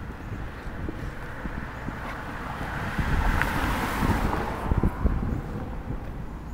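A car drives past on the street, rising and fading.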